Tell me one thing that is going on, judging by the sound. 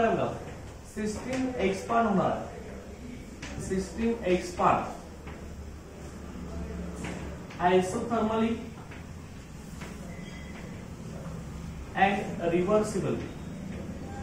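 A man lectures in bursts, speaking steadily with pauses.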